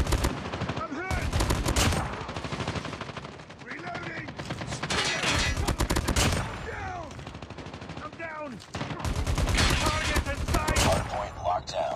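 A sniper rifle fires loud, sharp shots again and again.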